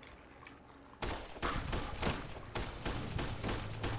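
A rifle fires a shot at close range.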